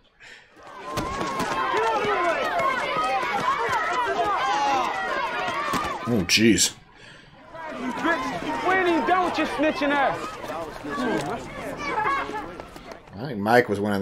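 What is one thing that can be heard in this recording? A crowd of young people shouts and jeers.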